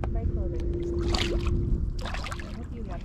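A fish splashes into the water.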